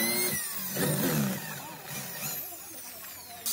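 An electric drill bores into wood.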